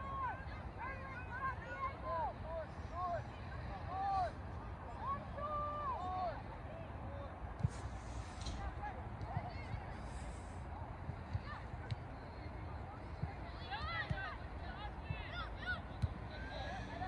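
Young men shout to each other far off across a playing field.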